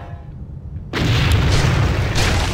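A fiery explosion bursts loudly.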